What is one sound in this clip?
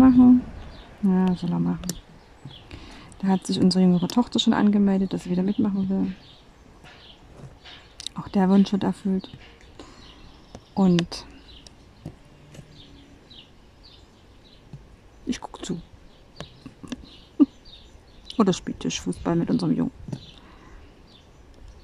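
A pen tool taps small plastic beads into place with faint clicks.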